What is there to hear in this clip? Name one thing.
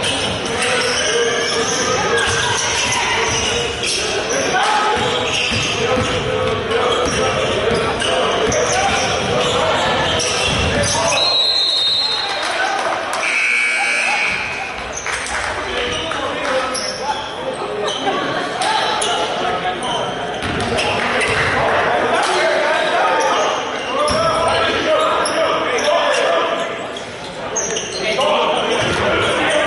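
Sneakers squeak on a hard court in a large echoing gym.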